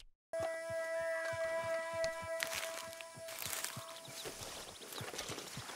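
A plant is pulled and rustles.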